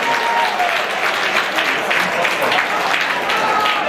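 Young men shout in celebration.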